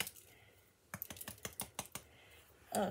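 A mug knocks lightly against a hard tabletop.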